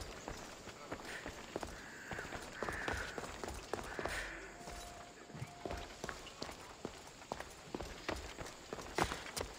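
Footsteps patter quickly on a hard floor.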